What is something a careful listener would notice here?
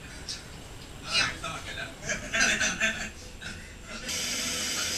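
Adult men and women chatter and laugh nearby.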